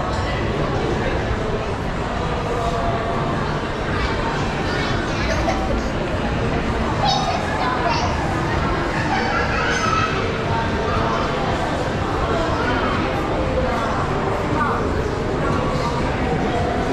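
A crowd of people murmur and chatter in a large echoing hall.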